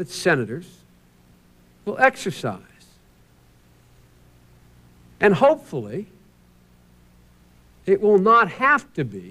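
A man speaks emphatically into a microphone in bursts, pausing between phrases.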